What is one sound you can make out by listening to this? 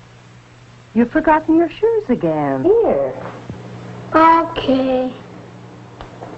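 A young boy speaks calmly.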